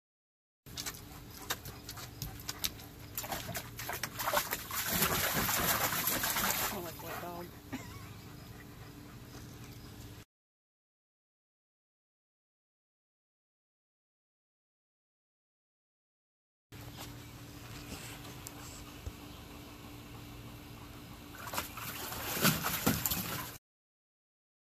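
A dog splashes water in a shallow pool.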